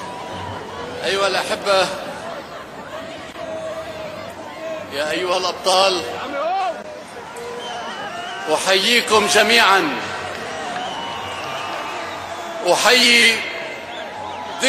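A large crowd cheers in loud bursts.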